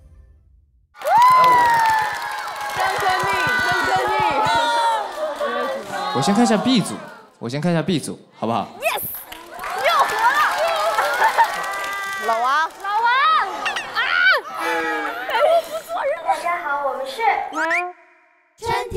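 Young women shriek and laugh excitedly.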